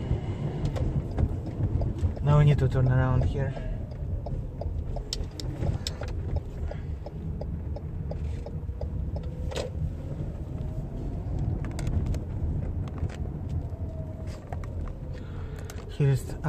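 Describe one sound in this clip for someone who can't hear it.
A car engine hums with a low road rumble as the car drives along.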